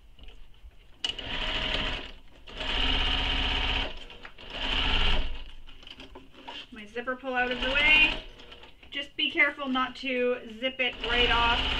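A sewing machine stitches in quick bursts.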